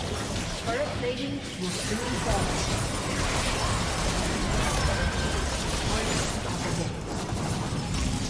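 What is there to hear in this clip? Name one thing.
Magic spells burst and crackle in a fast fantasy battle.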